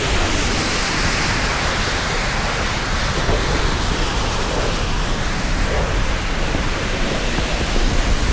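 Wind rushes loudly past the plane.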